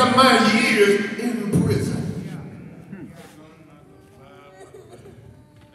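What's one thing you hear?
An elderly man preaches loudly and with passion through a microphone in an echoing hall.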